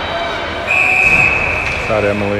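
A referee's whistle blows sharply once.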